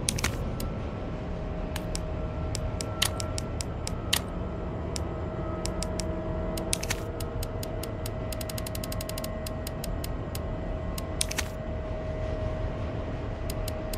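Short, sharp menu clicks tick one after another, sometimes in quick runs.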